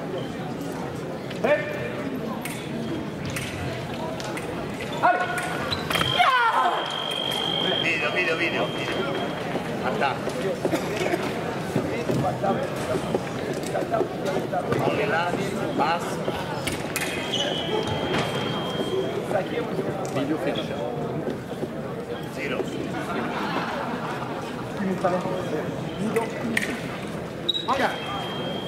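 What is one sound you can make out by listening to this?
Voices murmur and echo in a large hall.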